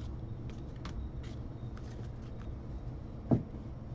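A stack of cards taps down on a table.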